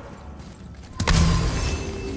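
A magical blast bursts with a sudden whoosh and crackle.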